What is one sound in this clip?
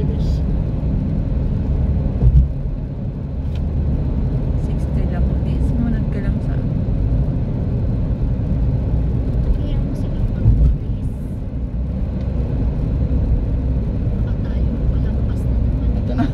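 Tyres roll on the road with a steady low rumble.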